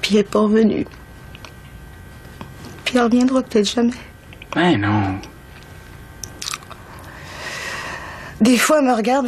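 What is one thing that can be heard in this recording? A woman speaks quietly and seriously, close by.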